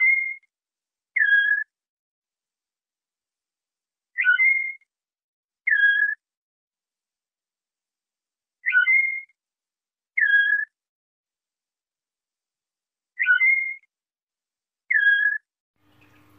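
A canary chirps in short, repeated pairs of notes.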